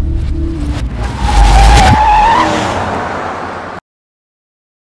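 A car engine rumbles as a car drives past.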